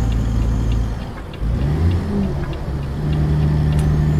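A truck engine drops off briefly and revs back up as gears change.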